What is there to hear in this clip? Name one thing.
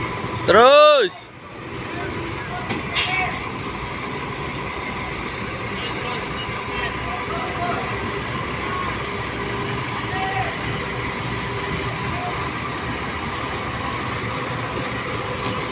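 Heavy machine engines rumble steadily.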